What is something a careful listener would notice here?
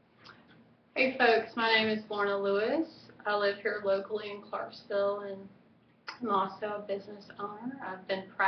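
A young woman speaks calmly and clearly close to a microphone.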